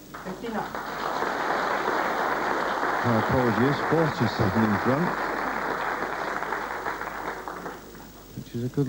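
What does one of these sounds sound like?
A large crowd applauds loudly, then fades.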